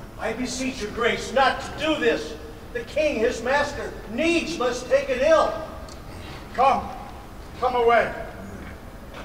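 A man speaks loudly and theatrically into a microphone, in a large echoing hall.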